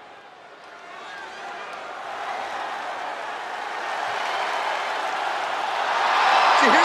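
A large arena crowd cheers and roars, growing louder.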